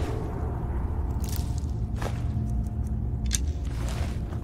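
Short clicks tick now and then.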